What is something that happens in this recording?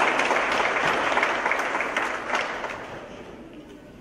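A children's choir sings in a large echoing hall and then falls quiet.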